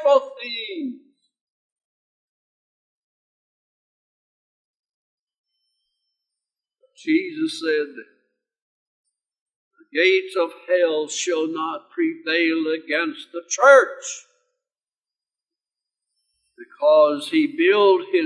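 An elderly man speaks earnestly into a microphone, with long pauses.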